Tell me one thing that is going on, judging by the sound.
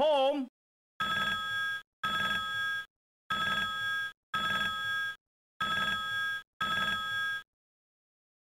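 A telephone rings in repeated bursts.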